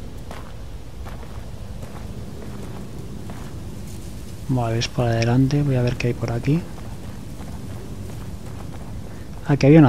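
Footsteps crunch slowly on loose rubble.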